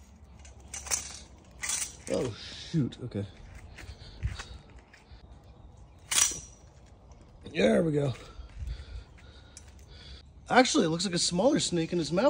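A metal grabber tool clicks as its jaws snap shut.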